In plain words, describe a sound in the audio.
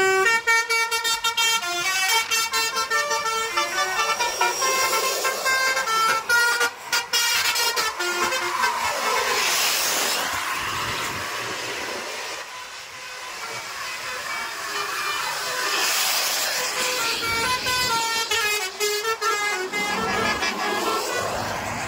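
Large buses rush past close by with a rising and fading roar.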